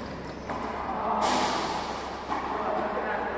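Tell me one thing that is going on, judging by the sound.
A ball smacks against a wall and echoes around a large hall.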